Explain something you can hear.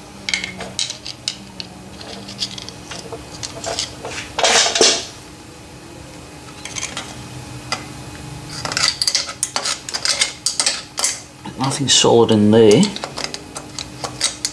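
A hand crank ratchets and whirs.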